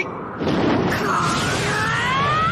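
A young man shouts fiercely.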